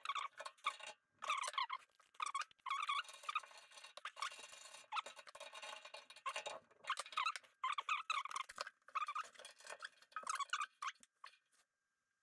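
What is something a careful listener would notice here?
A metal key clicks and scrapes against a radiator valve.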